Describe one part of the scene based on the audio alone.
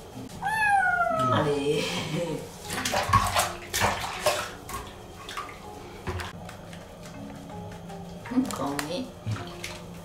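A kitten meows loudly and plaintively.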